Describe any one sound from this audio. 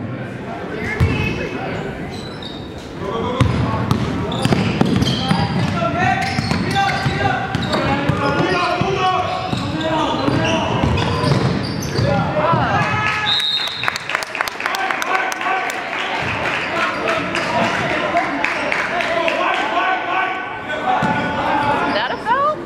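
Spectators nearby talk and call out in an echoing gym.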